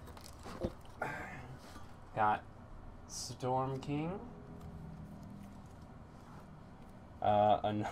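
Cardboard and paper rustle as hands handle a card.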